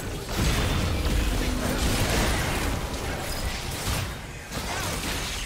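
Weapons clash and strike in quick bursts.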